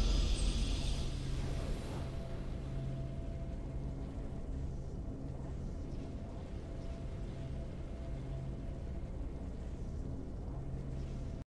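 Game victory music plays with a low, steady drone.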